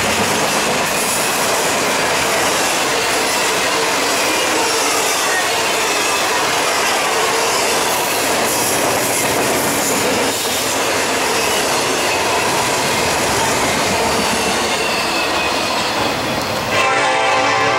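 A freight train rumbles loudly past close by.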